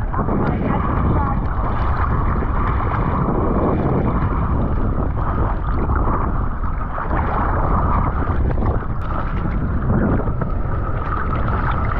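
Sea water sloshes and splashes close by.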